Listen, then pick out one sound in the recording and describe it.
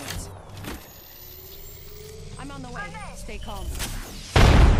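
A device charges up with a rising electronic whine.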